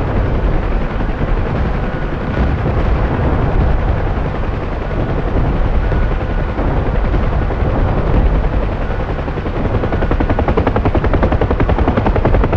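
A helicopter's rotor thumps and its engine roars steadily.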